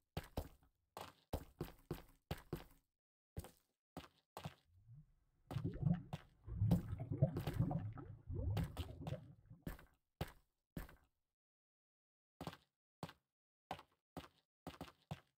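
Footsteps tread on stone at a steady walking pace.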